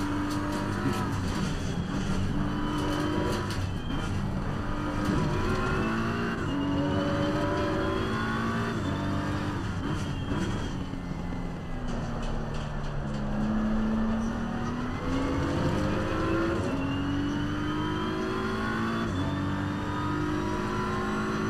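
A racing car engine roars, its pitch climbing and dropping sharply with each gear change.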